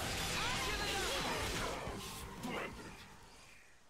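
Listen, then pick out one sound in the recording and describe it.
Game battle effects crash and whoosh.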